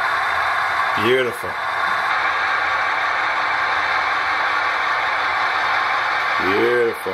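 A model locomotive sounds a short horn blast twice.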